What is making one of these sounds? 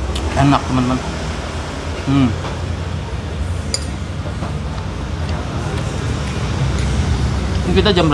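A man chews food noisily.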